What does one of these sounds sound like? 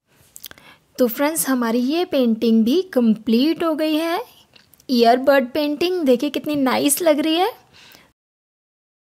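A woman speaks with animation, close by.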